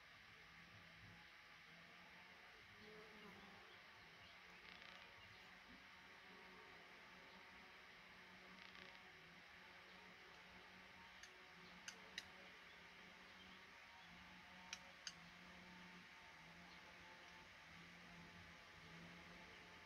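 Baby birds cheep faintly in a nest.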